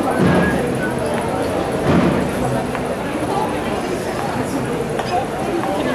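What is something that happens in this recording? A crowd of men and women chatter loudly close by outdoors.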